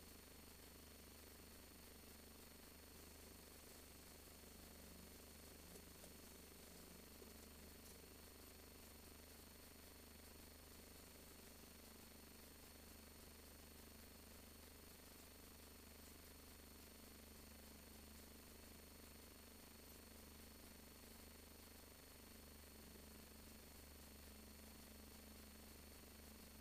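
A car engine idles steadily with a low hum.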